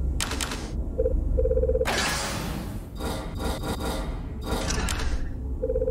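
Short electronic menu beeps sound in quick bursts.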